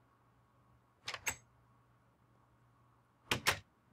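A wooden door clicks open.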